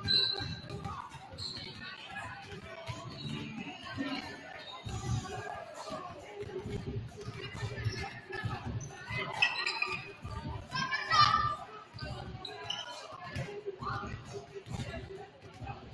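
Basketballs bounce on a wooden court in a large echoing gym.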